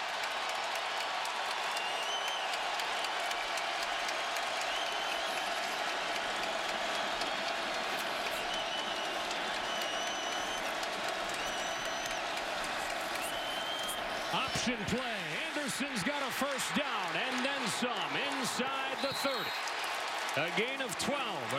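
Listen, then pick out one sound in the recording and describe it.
A large stadium crowd roars and cheers throughout.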